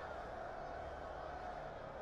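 A man shouts loudly to a crowd.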